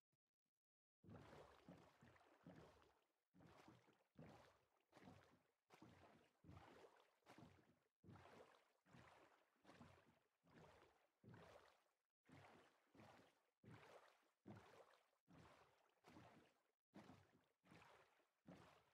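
Boat paddles splash through water in a steady rhythm.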